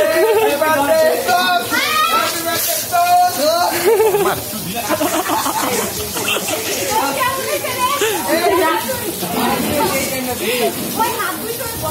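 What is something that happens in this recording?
A young woman laughs and talks loudly.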